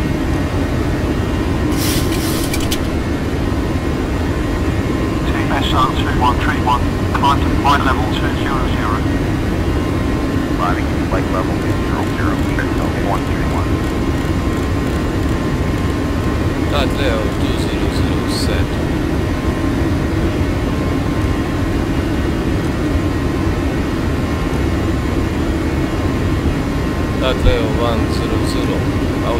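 Jet engines drone steadily from inside an airliner cockpit.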